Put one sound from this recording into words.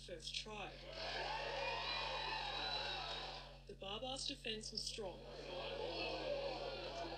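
A crowd cheers and shouts outdoors.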